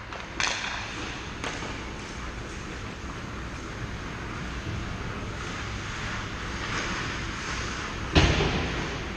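Skate blades scrape across ice in a large echoing rink.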